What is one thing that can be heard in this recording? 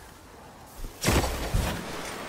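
A rifle fires a single loud, sharp shot.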